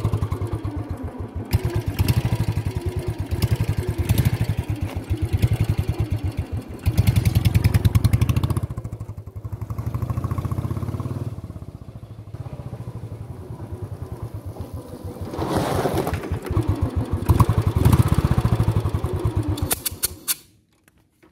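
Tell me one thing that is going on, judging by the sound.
A motorcycle engine idles with a steady, heavy thump close by.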